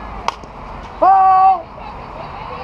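A young woman shouts loudly.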